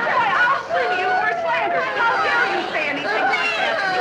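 A young boy talks excitedly.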